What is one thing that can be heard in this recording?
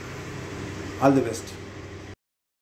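A middle-aged man speaks close to the microphone.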